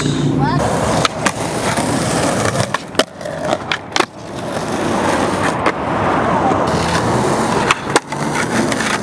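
A skateboard snaps and clacks sharply on concrete.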